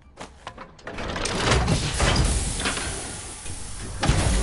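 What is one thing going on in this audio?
Air rushes out with a loud, hissing roar.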